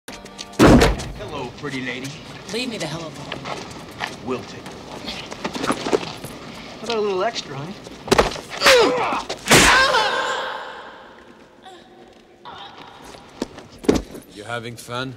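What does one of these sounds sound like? Blows land with loud thuds and smacks.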